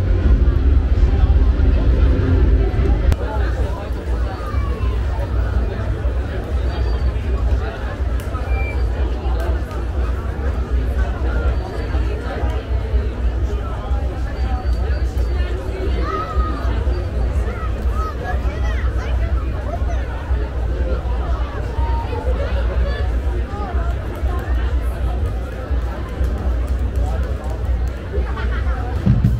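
A large outdoor crowd murmurs and chatters all around.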